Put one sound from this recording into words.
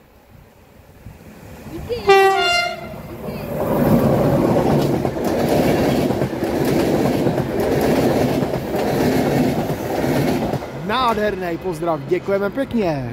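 A train approaches and rumbles loudly past on the tracks, then fades away.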